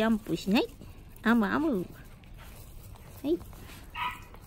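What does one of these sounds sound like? Small dogs whine and yelp up close.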